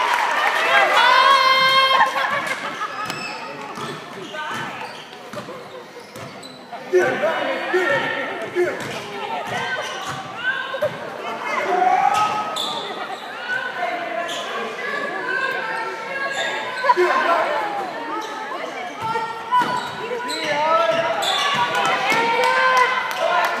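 Spectators and players shout and talk in an echoing gym.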